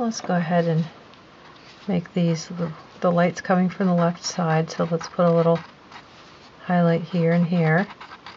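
A pencil scratches softly on paper.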